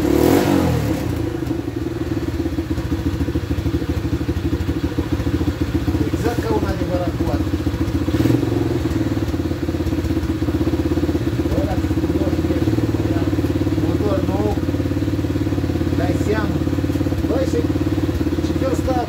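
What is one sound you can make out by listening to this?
A quad bike engine catches and idles steadily with a low rumble.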